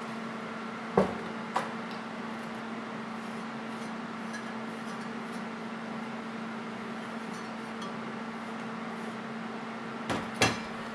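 A metal part knocks on a metal table.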